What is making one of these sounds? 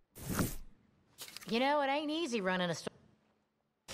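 Paper rustles as a catalogue page turns.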